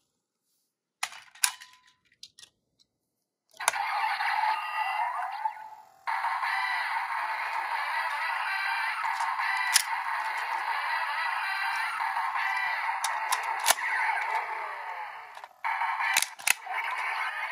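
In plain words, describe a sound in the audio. Plastic toy cars click and clack as they are handled and snapped into place.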